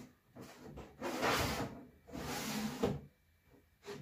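A box scrapes as it slides.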